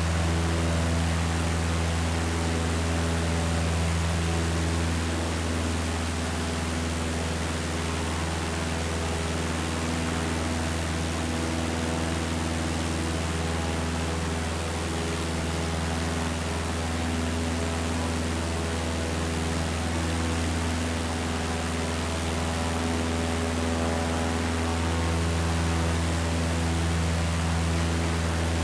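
A small propeller plane's engine drones steadily in flight.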